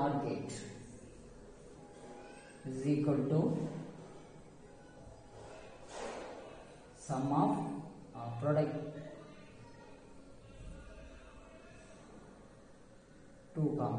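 A young man speaks calmly and explains, close by.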